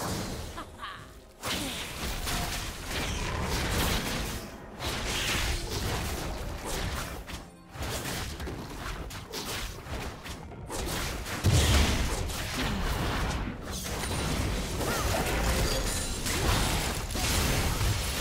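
Video game combat sounds of weapon strikes and spells clash repeatedly.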